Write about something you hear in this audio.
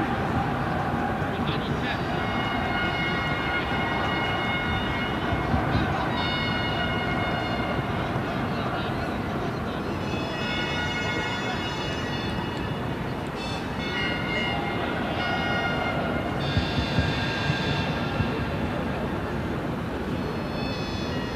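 Men talk quietly nearby outdoors.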